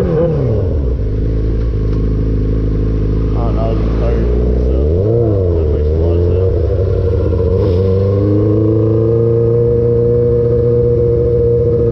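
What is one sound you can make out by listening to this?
A motorcycle engine hums and revs up and down as the bike rides along.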